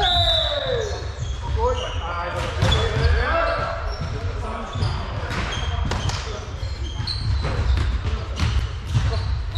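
Sneakers squeak sharply on a floor in a large echoing hall.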